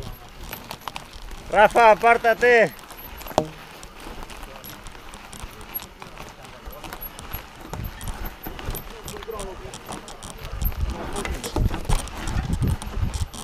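A bicycle rattles over bumps.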